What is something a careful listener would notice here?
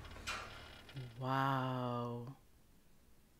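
A young woman exclaims with surprise close to a microphone.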